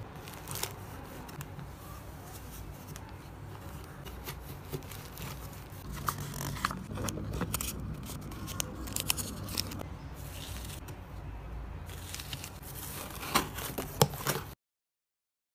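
Paper rustles and crinkles as hands handle items.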